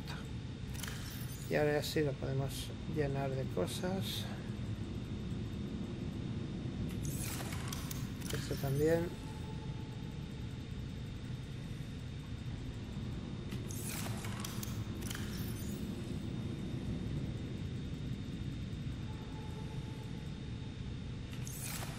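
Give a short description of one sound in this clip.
Soft interface clicks and chimes sound as items are moved.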